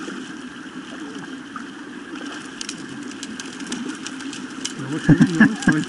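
A fish splashes and thrashes in the water.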